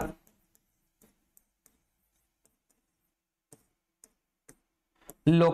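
A marker taps and squeaks on a board.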